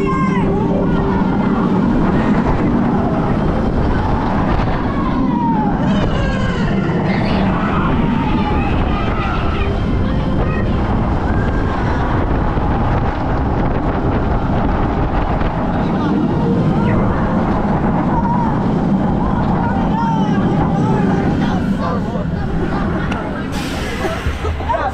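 A ride's machinery rumbles and whirs steadily.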